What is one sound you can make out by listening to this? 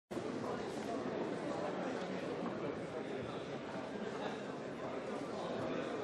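Many men and women chatter at once in a large echoing hall.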